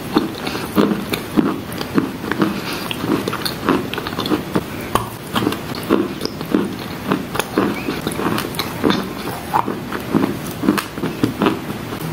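A young woman chews and crunches food wetly, close to a microphone.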